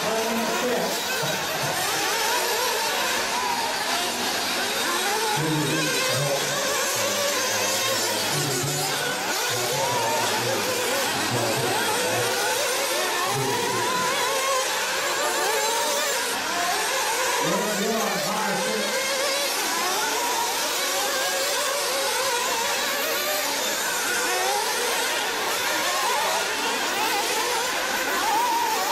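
Small model car engines whine and buzz, revving up and down as the cars race.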